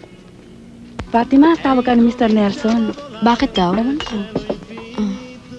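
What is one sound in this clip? A second young woman speaks calmly, close by.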